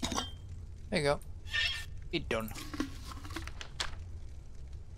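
A metal mechanism turns and clanks open.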